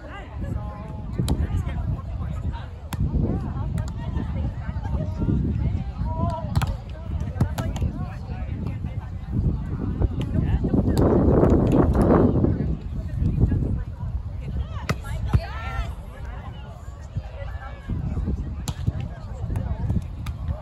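Players thump a volleyball back and forth outdoors.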